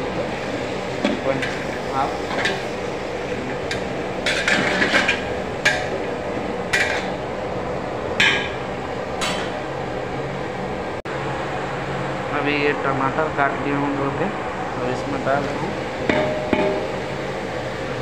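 A spatula scrapes and clatters against a metal pot.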